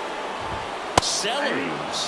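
A ball smacks into a catcher's mitt.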